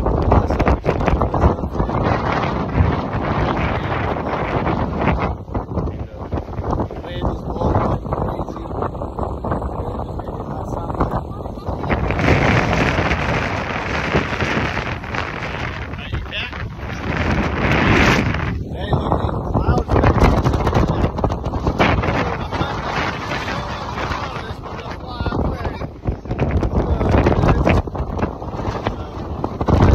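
Strong wind roars outdoors, buffeting the microphone.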